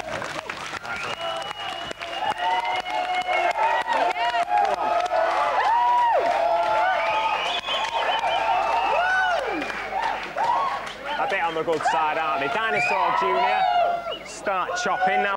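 A crowd cheers and screams loudly in a large hall.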